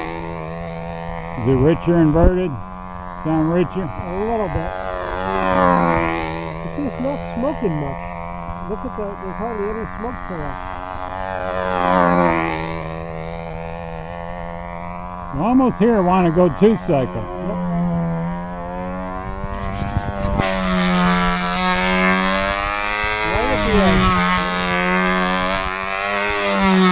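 A control-line model plane's glow engine drones as the plane circles, its pitch rising and falling with each lap.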